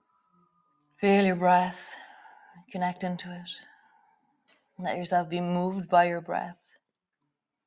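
A woman speaks calmly and slowly close to a microphone.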